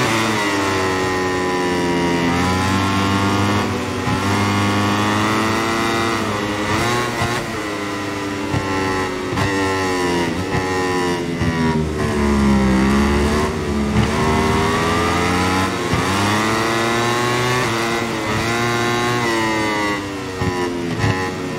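A four-stroke racing motorcycle engine screams, revving up and down through gear changes.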